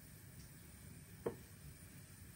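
A food ball is set down on a ceramic plate with a soft tap.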